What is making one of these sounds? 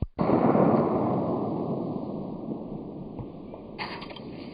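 A pistol shot cracks loudly outdoors and echoes away.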